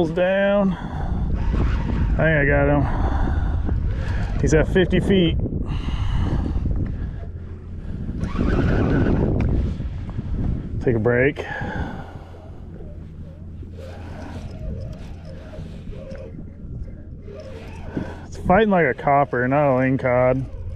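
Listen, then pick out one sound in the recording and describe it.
A fishing reel whirs and clicks as it is cranked.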